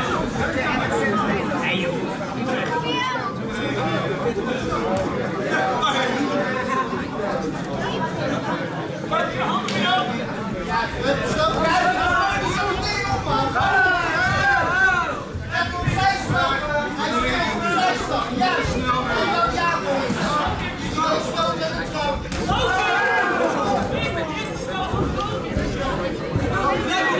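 A crowd of spectators shouts and cheers nearby.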